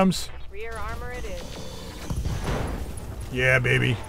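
Laser weapons fire and blast in a rapid burst.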